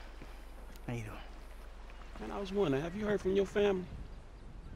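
A younger man answers in a relaxed voice.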